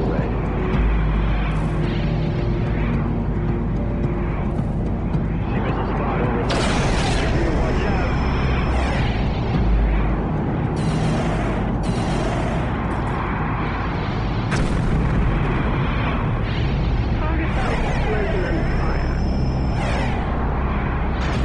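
Spaceship engines rumble steadily.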